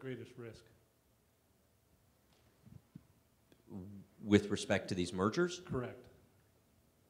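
A man speaks into a microphone in a large room.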